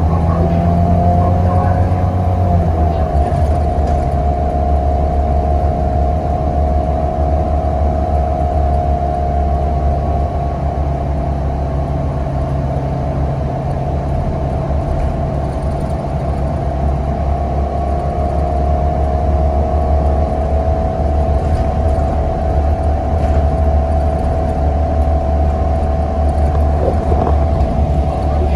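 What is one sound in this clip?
A bus interior rattles and creaks over the road.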